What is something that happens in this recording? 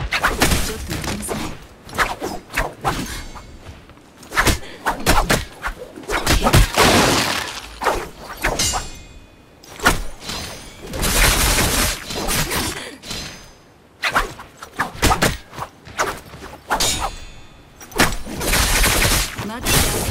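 Swords clash and strike in quick bursts during a game fight.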